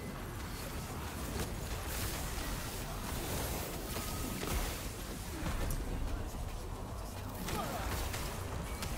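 Magic blasts and hits thud and boom repeatedly.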